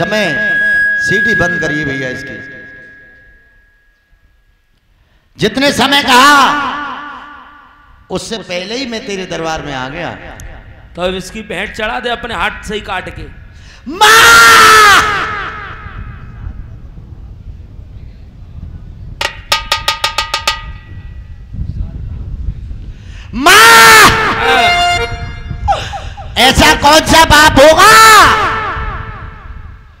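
A young man sings loudly through a microphone and loudspeakers, with an echo.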